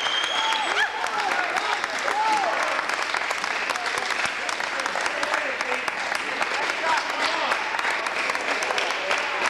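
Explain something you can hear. A crowd claps steadily in a large echoing hall.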